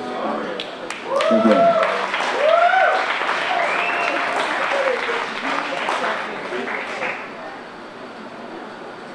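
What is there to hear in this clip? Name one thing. An acoustic guitar is strummed through loudspeakers.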